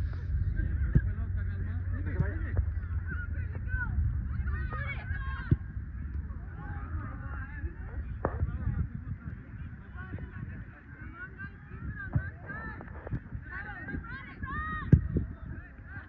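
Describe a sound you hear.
Players' feet kick a soccer ball with dull thuds.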